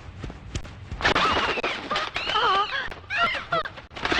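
An elderly woman shouts in alarm.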